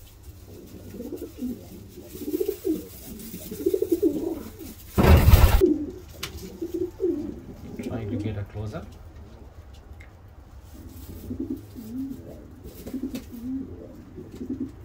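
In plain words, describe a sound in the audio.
A pigeon chick squeaks and peeps while begging for food.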